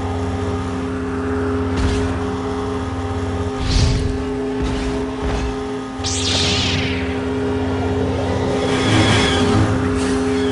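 A lightsaber swooshes as it swings.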